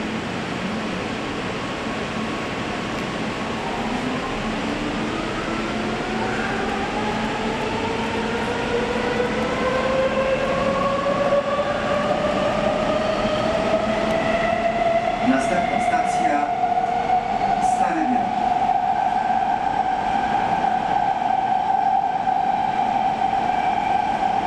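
A metro train rumbles along the rails.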